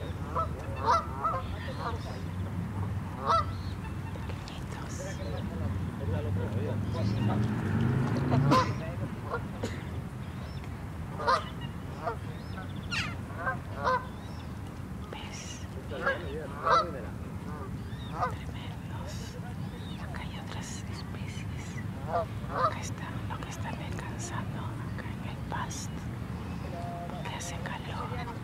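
A steady low rumble of wind blows outdoors.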